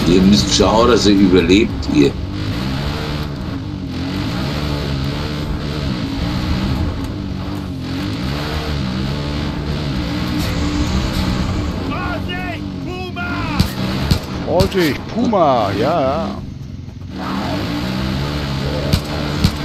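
A motorbike engine hums steadily and rises and falls in pitch as it rides.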